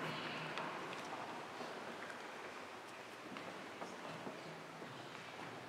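An organ plays softly in a large echoing hall.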